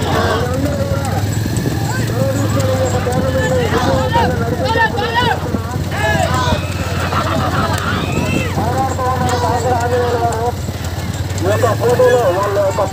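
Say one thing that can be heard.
A crowd of people chatters and cheers.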